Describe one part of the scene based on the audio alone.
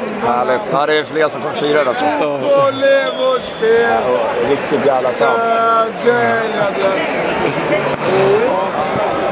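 A man talks close by, with animation.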